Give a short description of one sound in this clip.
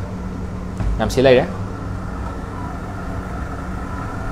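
A plastic canister thuds and scrapes on a hard floor.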